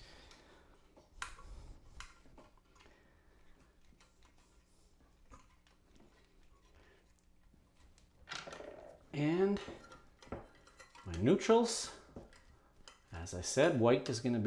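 A metal electrical box clicks and scrapes as hands fit it.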